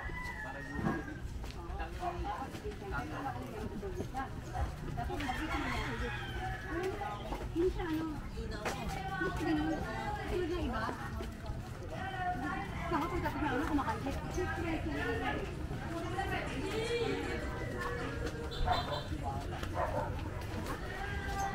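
Young women talk casually as they walk, heard close by outdoors.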